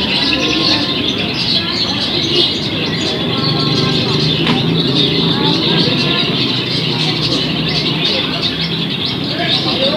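Many caged songbirds chirp and trill busily.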